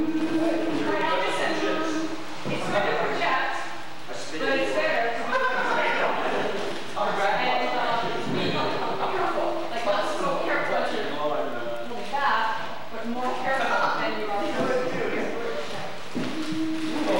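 Young women sing together into microphones through loudspeakers in a hall.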